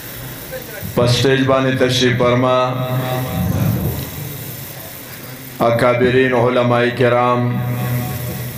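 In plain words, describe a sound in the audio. A man preaches forcefully into a microphone, heard through loudspeakers outdoors.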